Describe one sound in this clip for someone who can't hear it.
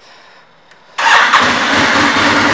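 A motorcycle engine starts up with a sudden roar.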